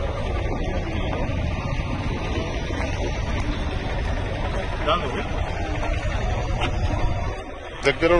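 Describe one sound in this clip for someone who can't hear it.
A wooden board smacks against a man's body.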